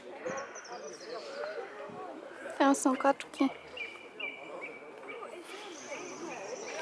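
A group of young women chatter close by outdoors.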